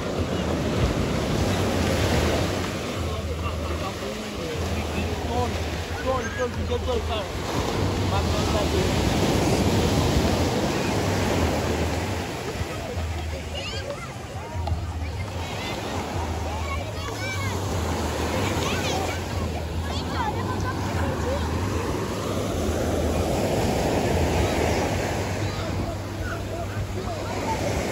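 Waves wash onto the shore.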